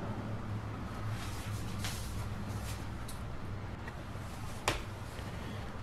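A closet door slides open with a rattle.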